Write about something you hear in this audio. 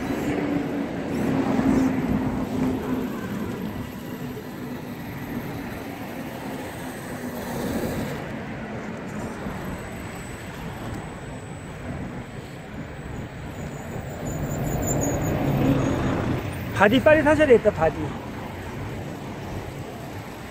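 Small electric motors whine as toy off-road cars crawl.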